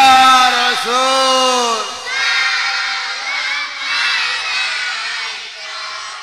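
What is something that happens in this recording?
A group of men sing together loudly, in a long, wavering chant.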